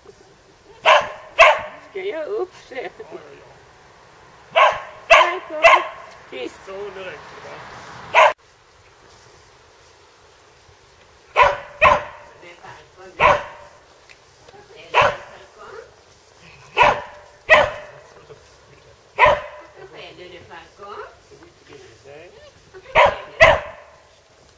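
A dog barks loudly and repeatedly outdoors.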